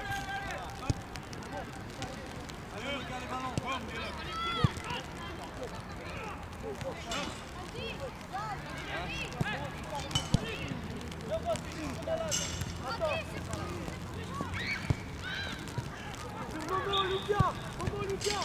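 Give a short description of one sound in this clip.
A football thuds when kicked.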